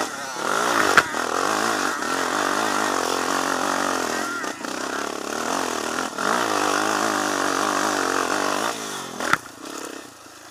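A quad bike engine roars loudly up close as it climbs.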